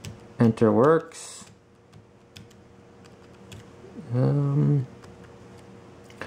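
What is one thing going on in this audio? Fingers tap softly on keyboard keys.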